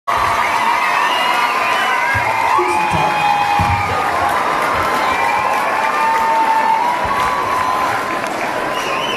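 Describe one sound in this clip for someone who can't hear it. A man sings into a microphone over loudspeakers in a large echoing hall.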